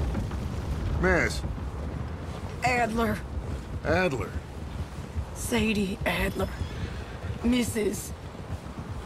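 A young woman answers haltingly, with pauses.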